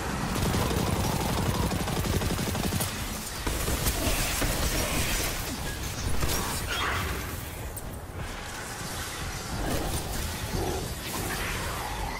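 Rapid gunfire cracks and booms.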